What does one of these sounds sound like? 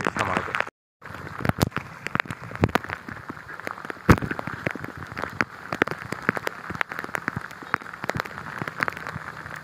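Water rushes steadily over a road.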